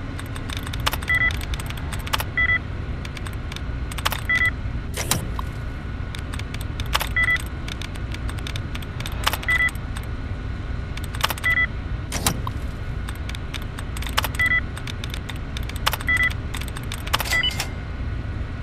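An old computer terminal gives short electronic beeps as entries are selected.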